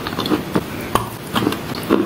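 A young woman bites into something crisp, close to a microphone.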